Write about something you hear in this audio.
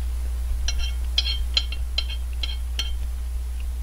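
A metal spoon clinks repeatedly against a ceramic plate.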